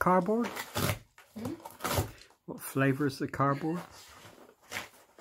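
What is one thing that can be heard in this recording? A dog tears and rips cardboard up close.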